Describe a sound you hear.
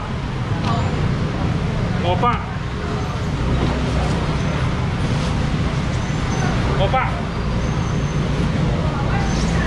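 People chatter in the background of a busy indoor hall.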